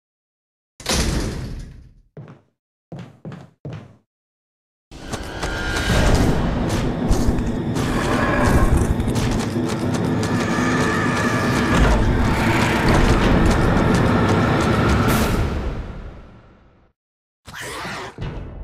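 Footsteps creak across a wooden floor.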